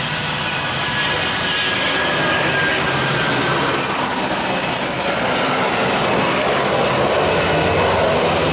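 A high jet engine whine rises and then falls in pitch.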